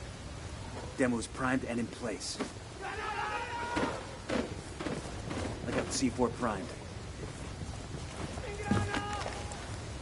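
Gunshots crack nearby in quick bursts.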